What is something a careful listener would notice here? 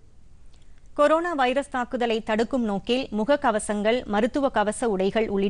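A young woman reads out news clearly through a microphone.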